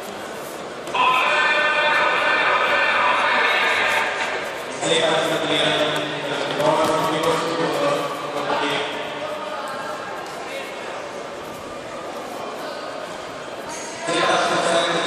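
Men shout encouragement loudly from nearby.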